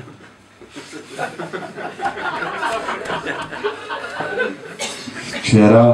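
An elderly man reads aloud calmly into a microphone.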